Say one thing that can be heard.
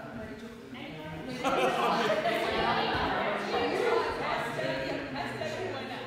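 Several adults chat nearby in a room that echoes.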